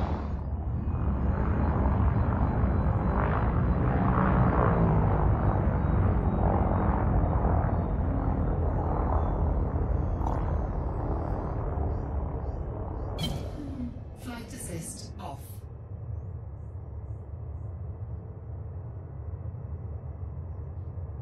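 A spaceship's engines hum with a deep, steady rumble.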